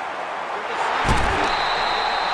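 Football players collide with a heavy thud.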